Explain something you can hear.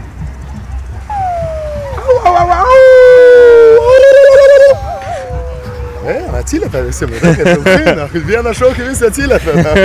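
A group of young people talk and shout loudly outdoors.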